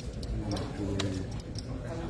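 Game pieces click on a table.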